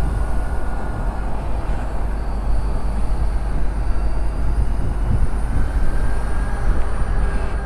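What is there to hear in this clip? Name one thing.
A motorcycle engine hums steadily up close as it rides.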